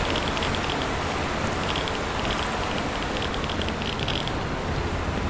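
Footsteps clank rhythmically on a metal ladder.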